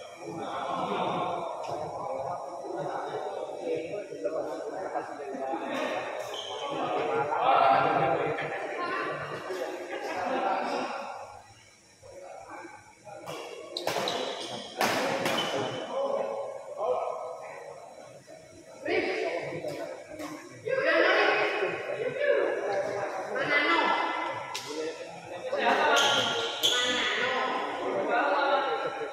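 Spectators near by talk and call out.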